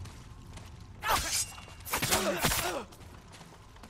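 Metal swords clash and ring sharply.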